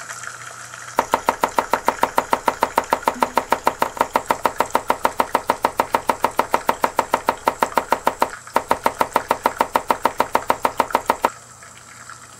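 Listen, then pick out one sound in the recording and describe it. A knife chops rapidly and steadily on a cutting board.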